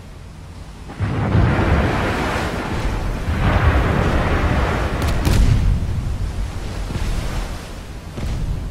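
Heavy naval guns boom loudly and rumble.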